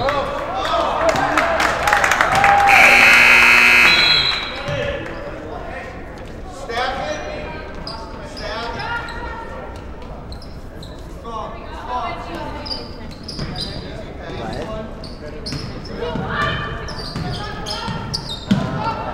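A man shouts instructions across an echoing gym.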